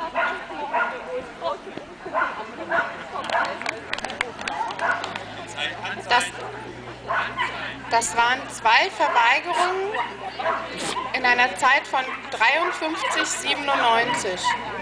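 A woman calls out eagerly to a dog outdoors.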